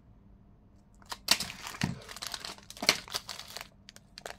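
Plastic packaging crinkles and rustles as it is handled.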